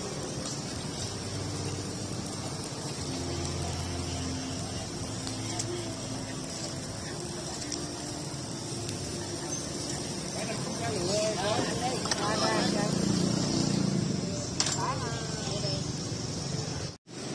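Food sizzles and crackles softly over a charcoal grill.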